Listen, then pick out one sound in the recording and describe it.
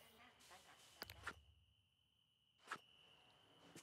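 Short chiming clicks sound as a game menu opens and closes.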